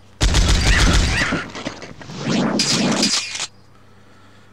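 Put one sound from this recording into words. A heavy gun fires with loud, booming blasts.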